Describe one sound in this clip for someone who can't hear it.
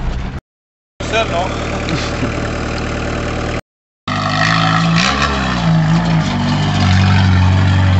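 A car engine idles and revs as a car pulls away.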